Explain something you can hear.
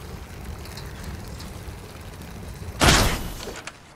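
A bow twangs as an arrow is loosed.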